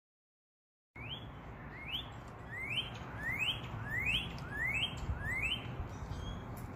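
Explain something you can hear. A cardinal sings a series of clear, rising whistled notes.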